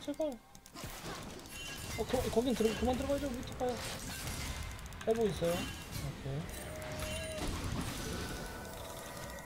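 Game spell and attack effects crackle and whoosh.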